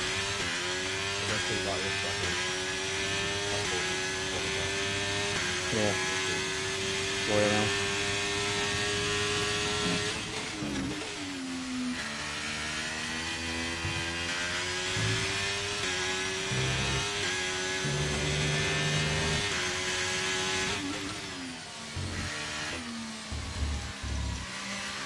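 Gear shifts crack sharply between revs.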